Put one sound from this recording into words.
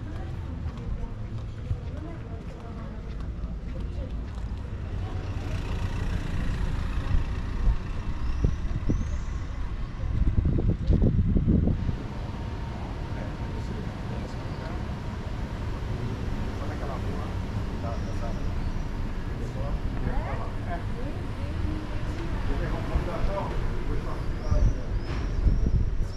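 Footsteps scuff on a stone pavement close by.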